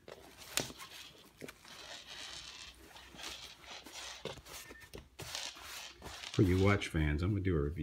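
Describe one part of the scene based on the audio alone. Fabric rustles as a shirt is handled.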